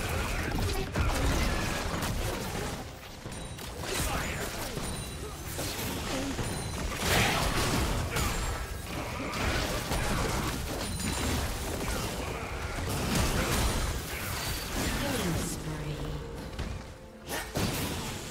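Magic blasts burst and crackle in a video game battle.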